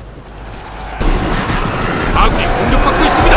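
Creatures growl and clash in a battle.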